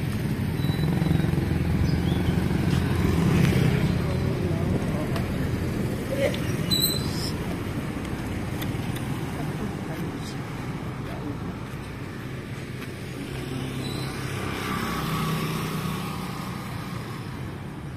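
Motorcycle engines putter past on a street.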